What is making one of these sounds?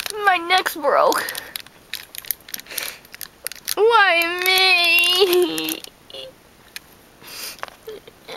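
A plastic toy figure clicks and rattles as it is handled close by.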